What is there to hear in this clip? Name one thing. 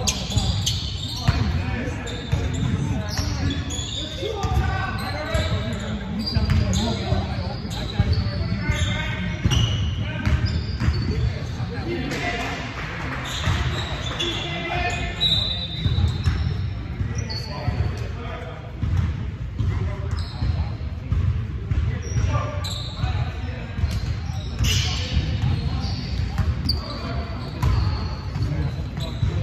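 Basketballs bounce on a wooden court in a large echoing gym.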